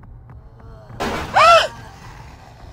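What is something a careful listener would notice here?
A young woman gasps in surprise.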